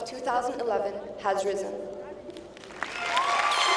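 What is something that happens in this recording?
A young woman speaks calmly into a microphone in a large echoing hall.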